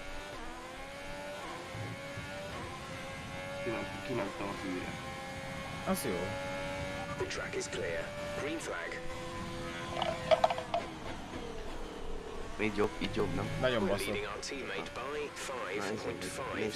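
A racing car engine whines at high revs, rising and falling with gear changes.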